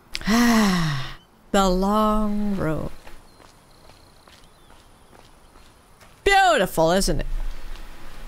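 A young woman speaks in a lively, sing-song voice close to a microphone.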